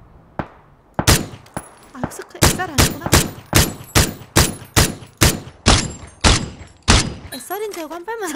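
Gunshots ring out in a rapid series of sharp cracks.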